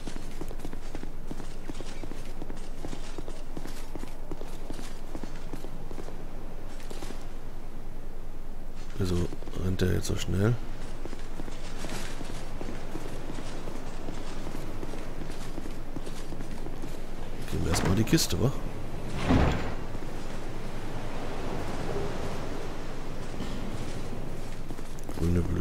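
Armoured footsteps run quickly over stone.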